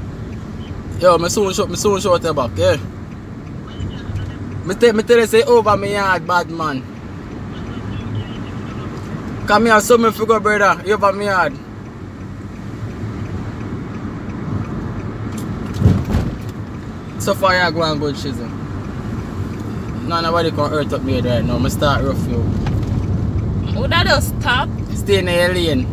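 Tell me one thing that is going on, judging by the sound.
A young man sings in bursts close by.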